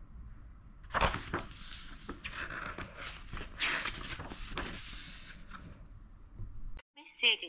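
Paper pages rustle and flip.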